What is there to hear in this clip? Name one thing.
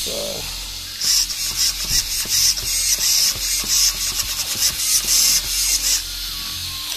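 A small electric motor whirs in short, buzzing bursts.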